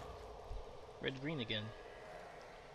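A man speaks briefly and calmly into a close microphone.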